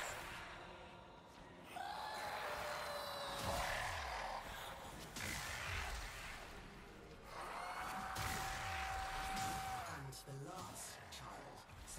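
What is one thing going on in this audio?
Blades swish and slash in quick strikes.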